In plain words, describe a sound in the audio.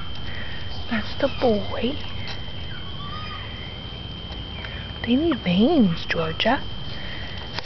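Puppies whimper and squeak in high little cries.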